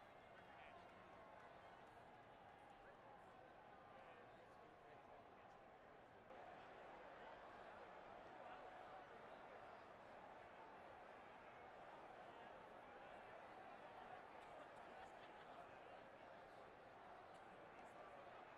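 A large stadium crowd roars steadily in the distance.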